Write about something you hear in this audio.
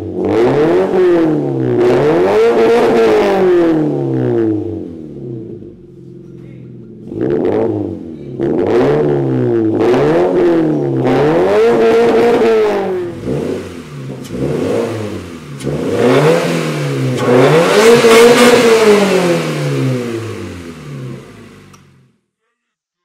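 A car engine revs hard again and again through a loud, throaty exhaust.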